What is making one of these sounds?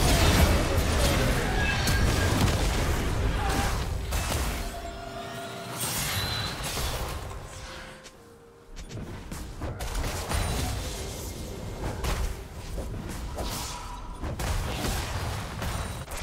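Spell effects and blows whoosh and clash during a fight in a video game.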